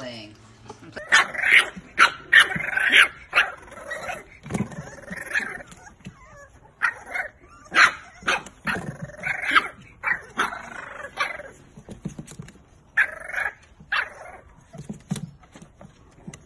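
Puppies yap and squeal excitedly.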